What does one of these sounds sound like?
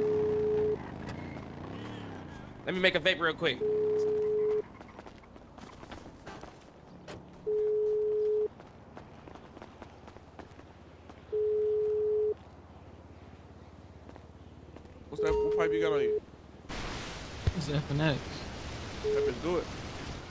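A phone ringtone beeps at steady intervals while a call waits to connect.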